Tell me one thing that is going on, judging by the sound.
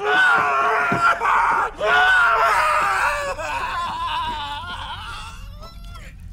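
A man screams and groans in pain up close.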